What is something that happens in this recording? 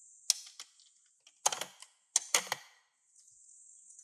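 A plastic toy drawer slides open.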